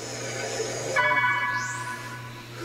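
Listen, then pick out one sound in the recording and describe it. A short electronic chime rings as a menu opens.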